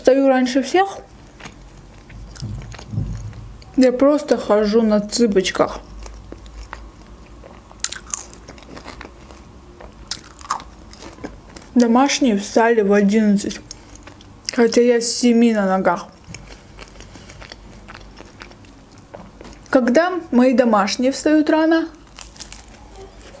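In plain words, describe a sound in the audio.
A young woman chews food with soft crunching and smacking sounds.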